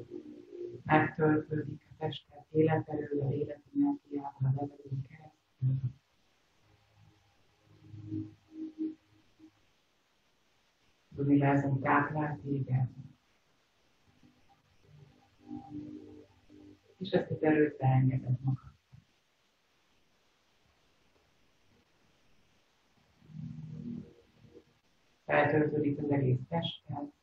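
A young woman speaks calmly and slowly through an online call, with pauses.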